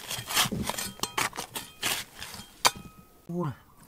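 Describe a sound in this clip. Loose stones and dirt clatter and crumble.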